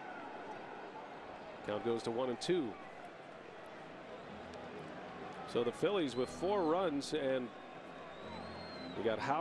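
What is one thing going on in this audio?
A large crowd murmurs in a stadium.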